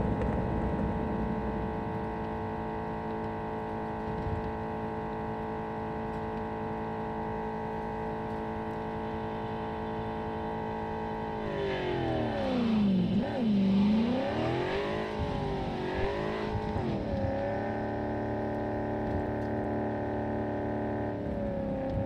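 A car engine hums steadily at speed.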